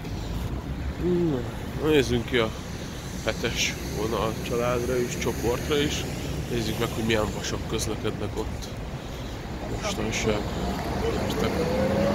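A young man talks calmly close to a microphone, outdoors.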